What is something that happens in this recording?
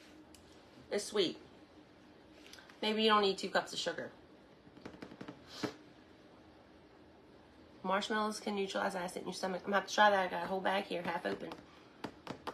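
A woman speaks close by with animation, in short bursts.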